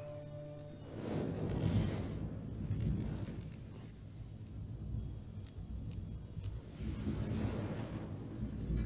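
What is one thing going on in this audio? A man breathes heavily in his sleep.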